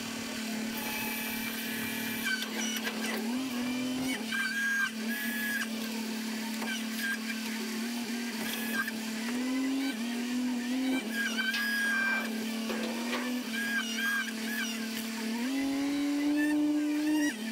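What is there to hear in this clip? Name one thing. A diesel engine hums steadily close by, its pitch rising as the hydraulics work.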